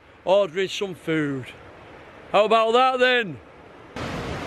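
A middle-aged man speaks cheerfully, close to the microphone.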